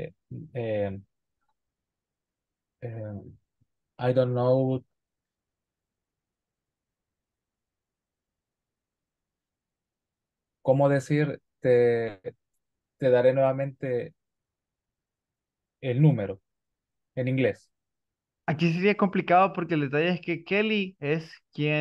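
A young man speaks calmly over an online call, reading out lines.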